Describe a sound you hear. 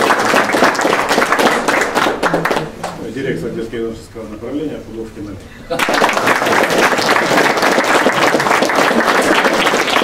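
A group of people applauds.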